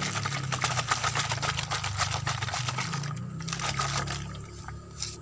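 Liquid pours through a funnel into a plastic bottle.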